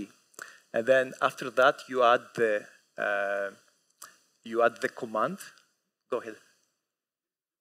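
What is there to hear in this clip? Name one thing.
A man speaks calmly into a microphone, heard over a loudspeaker.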